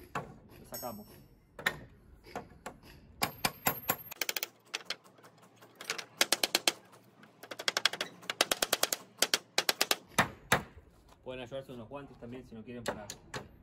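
A hammer taps rapidly on nails in wood.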